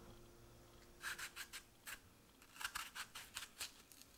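Crisp lettuce leaves rustle and crackle as hands handle them.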